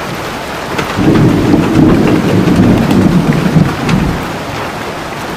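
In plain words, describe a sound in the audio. Thunder rumbles deeply overhead.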